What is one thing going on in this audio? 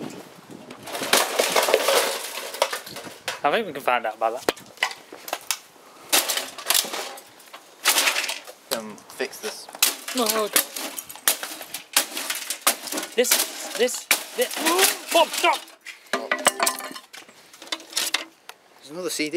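A sledgehammer smashes into a metal and plastic box with loud crunching blows.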